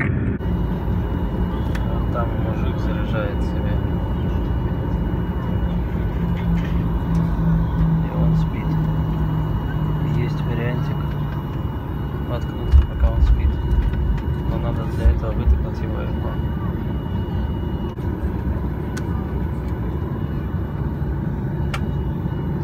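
Jet engines drone with a steady, deep roar.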